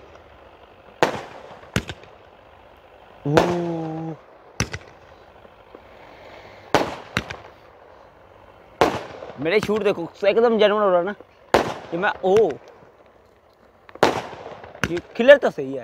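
Fireworks bang and crackle in the open air.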